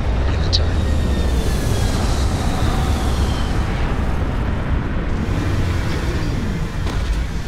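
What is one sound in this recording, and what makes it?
Spaceship thrusters roar steadily with a deep rumble.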